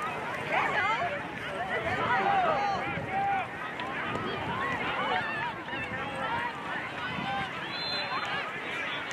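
Many voices of young people and adults chatter and call out across an open outdoor field.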